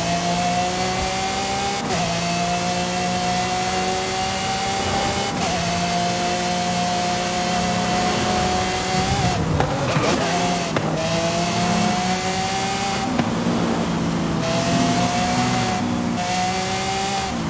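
A racing car engine roars loudly, climbing in pitch through each gear and dropping sharply at every gear change.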